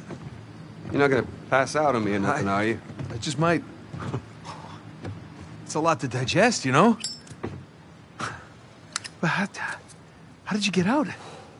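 A young man speaks quietly and calmly nearby.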